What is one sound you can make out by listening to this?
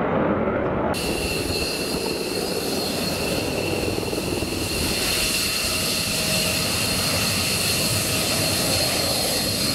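A jet engine whines with a high, steady scream as a fighter jet taxis close by.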